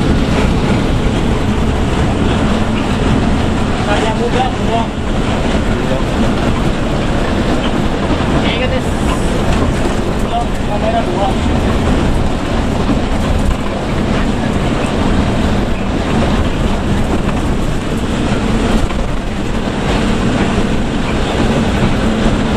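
A bus engine rumbles steadily as it drives along a highway.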